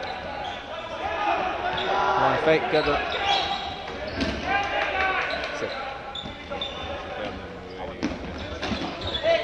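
Young men shout to each other from across a large echoing hall.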